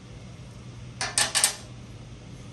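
A hand tool clicks against metal.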